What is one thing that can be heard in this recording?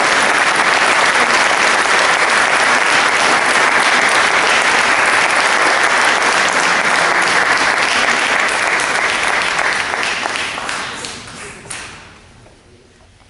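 An audience applauds loudly in a large echoing hall, then the clapping dies away.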